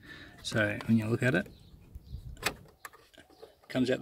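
A plastic clip clicks onto a thin metal rod.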